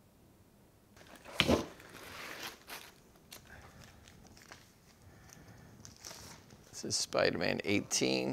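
Plastic packaging rustles and crinkles.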